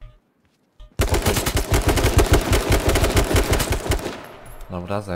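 A rifle fires a long rapid burst of automatic gunshots.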